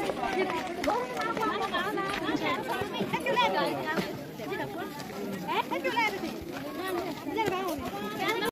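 Several women and a young girl talk nearby outdoors.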